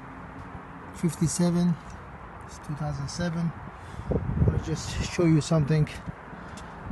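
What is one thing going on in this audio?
A man speaks close by, calmly and in short phrases.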